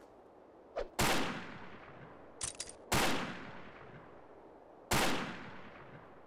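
A rifle fires loud single shots that echo and fade.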